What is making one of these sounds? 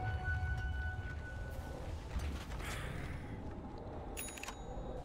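Fantasy game battle effects crackle and chime over a low rumble.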